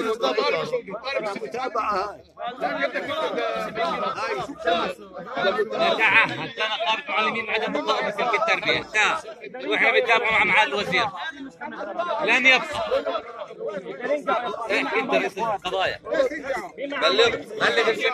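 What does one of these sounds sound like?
A crowd of men talks around, outdoors.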